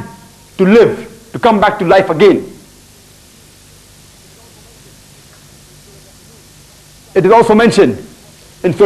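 A young man speaks calmly into a clip-on microphone, in short bursts with pauses.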